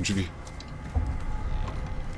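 A wooden door is pushed with a dull thud.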